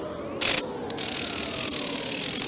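Electricity crackles and hisses steadily.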